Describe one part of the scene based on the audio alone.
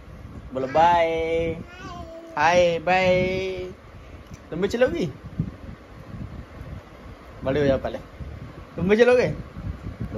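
A young woman talks to a small child in a high, playful voice close by.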